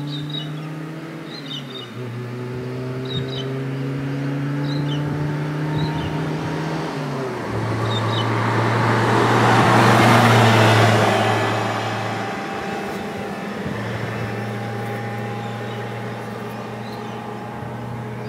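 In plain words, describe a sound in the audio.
A small truck's engine hums as it approaches, passes close by and fades into the distance.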